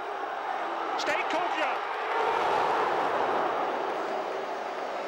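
A stadium crowd swells into a loud cheer.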